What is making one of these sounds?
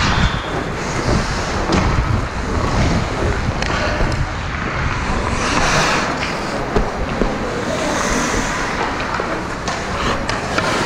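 Skate blades scrape and hiss across ice.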